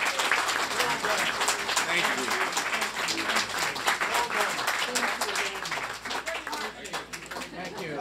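A crowd claps and cheers in a room.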